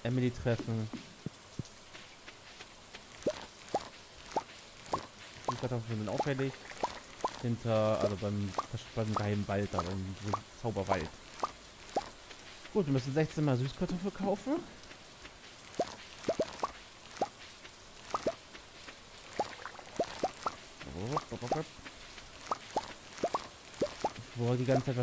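Short soft pops sound again and again as crops are picked.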